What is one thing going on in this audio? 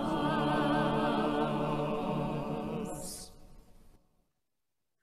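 A choir of men and women sings together through an online call, then fades out.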